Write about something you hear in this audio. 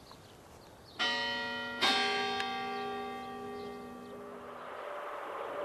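A church bell rings out loudly and its tone rings on.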